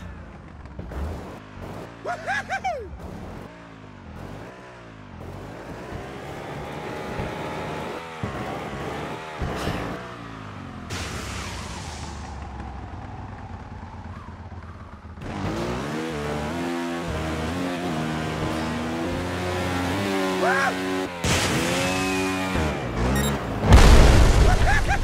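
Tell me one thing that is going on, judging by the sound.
A motorbike engine revs up and down.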